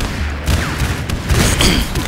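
A revolver fires sharp gunshots.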